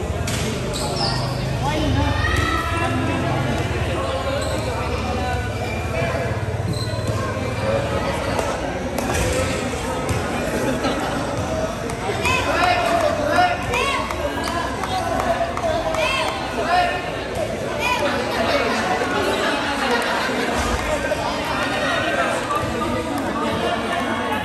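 Several men talk with animation in a large echoing hall.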